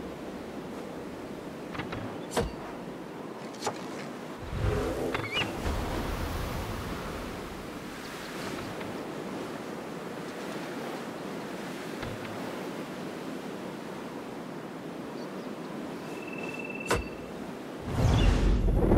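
Wind rushes steadily past a gliding eagle.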